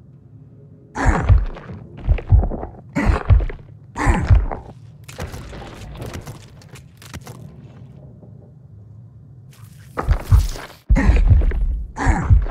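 Heavy blows thud again and again.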